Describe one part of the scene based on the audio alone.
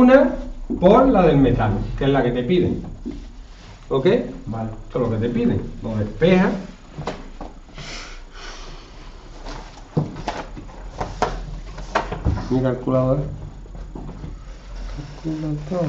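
A man speaks calmly and steadily nearby, explaining at length.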